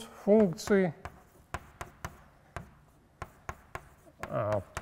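Chalk taps and knocks on a board.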